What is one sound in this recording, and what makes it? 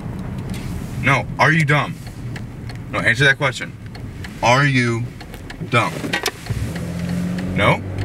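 A young man speaks up close in short bursts.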